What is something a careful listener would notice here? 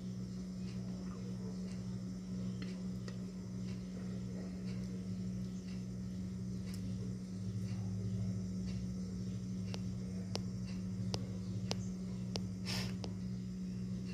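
A metal spoon scrapes and clinks against a glass dish.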